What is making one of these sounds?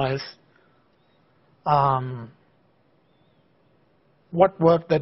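A man lectures calmly through a microphone, in short bursts with pauses.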